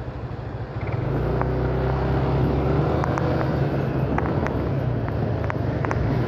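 A small motorcycle engine revs as it pulls away.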